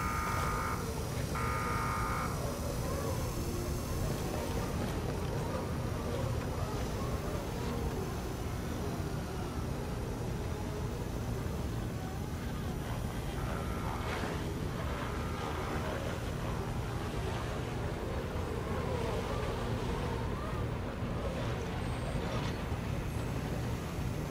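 Footsteps walk over a hard metal floor.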